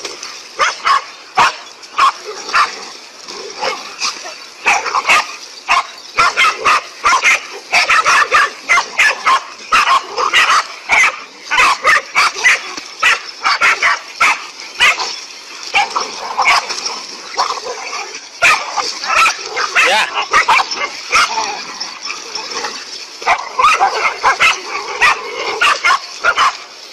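Several dogs bark loudly and rapidly.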